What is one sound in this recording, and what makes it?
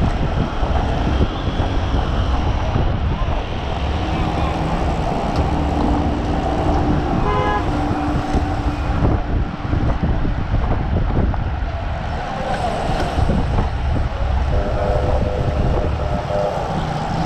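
Bicycle wheels hum on the road.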